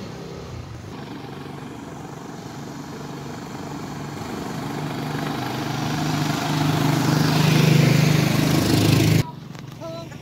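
A motorized tricycle engine putters closer and grows louder, then cuts off abruptly.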